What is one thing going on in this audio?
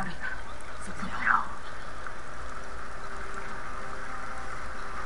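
Wind rustles steadily through tall grass.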